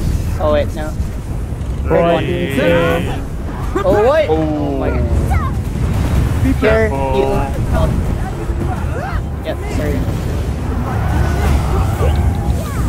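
Magic spells burst and rumble in a fight.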